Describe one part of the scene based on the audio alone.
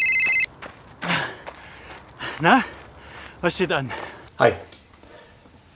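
A man speaks into a phone with animation.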